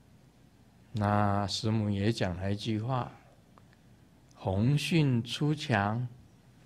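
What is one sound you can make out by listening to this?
An elderly man chants in a low, steady voice through a microphone.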